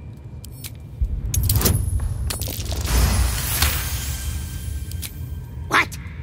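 A dice rolls and clatters with a ringing chime.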